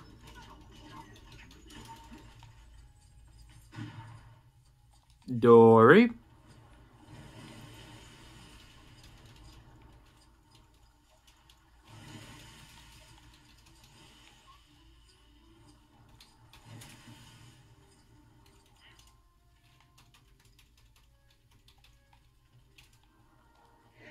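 Video game sound effects play quietly from a television.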